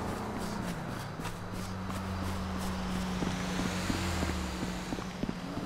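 A truck engine rumbles as the truck drives past.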